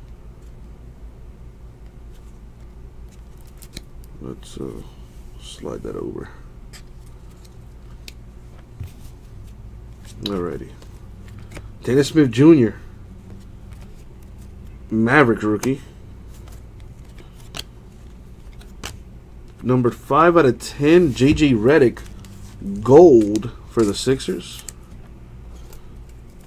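Trading cards slide and click against each other as they are shuffled by hand.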